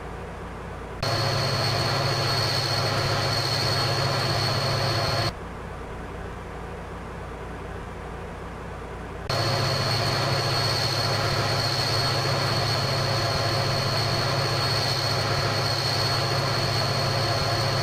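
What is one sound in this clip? A train engine drones loudly and steadily, heard from outside.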